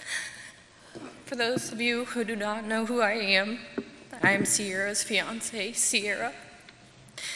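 A young woman speaks emotionally into a microphone, pausing between phrases, her voice echoing in a large hall.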